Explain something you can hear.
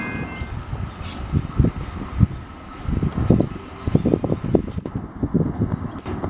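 Train wheels clatter on the rails as a train pulls away.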